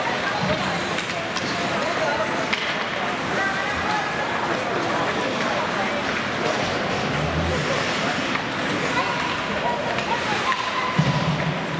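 Ice skates scrape and swish across the ice in a large echoing hall.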